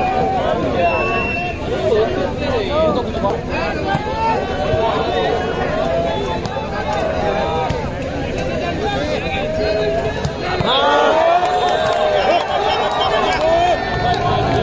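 A crowd of spectators chatters and cheers loudly outdoors.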